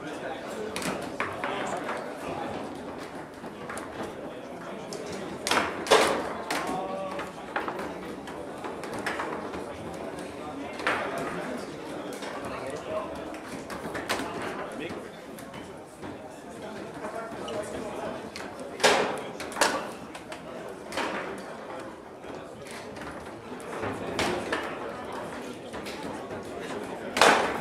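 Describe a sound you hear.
Players spin and slide the rods of a table football game.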